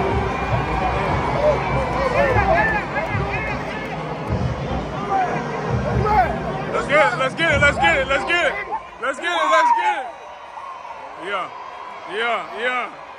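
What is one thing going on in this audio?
A large crowd cheers loudly outdoors.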